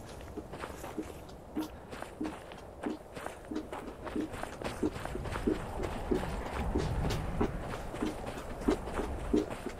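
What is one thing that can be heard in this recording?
Feet step and slide in a steady walking rhythm on a slidemill treadmill.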